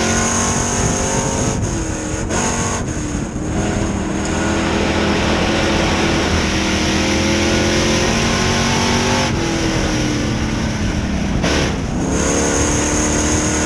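A race car engine roars loudly up close, its pitch rising and falling as it shifts and revs.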